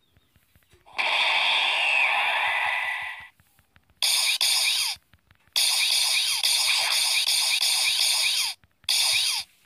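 Fighters' energy blasts whoosh and crackle loudly.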